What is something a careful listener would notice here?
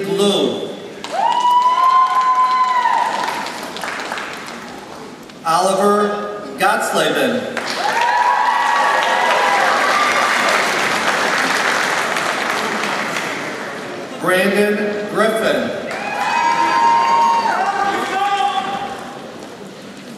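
People in a crowd cheer and whoop.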